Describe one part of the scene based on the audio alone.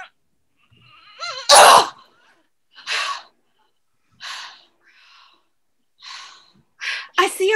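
A middle-aged woman laughs loudly over an online call.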